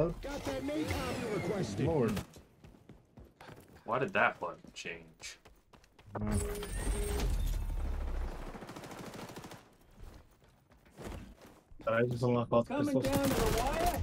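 Gunfire bursts out in quick shots.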